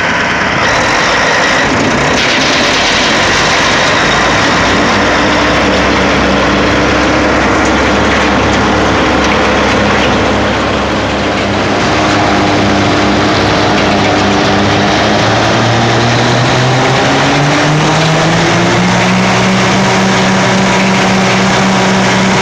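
A diesel engine roars loudly and steadily close by.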